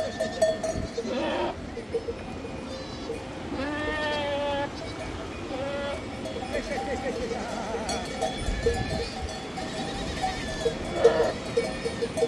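Goats bleat loudly nearby, several times.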